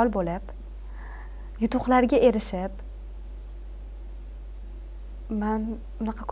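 A young woman speaks calmly and warmly into a close microphone.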